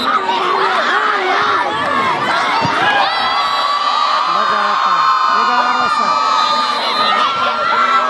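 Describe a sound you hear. A large outdoor crowd cheers and shouts throughout.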